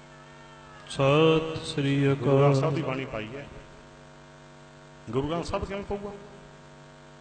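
An elderly man speaks forcefully into a microphone through a loudspeaker, with pauses.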